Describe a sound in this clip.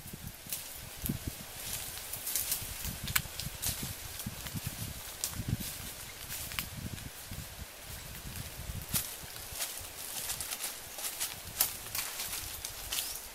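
Dry twigs snap underfoot.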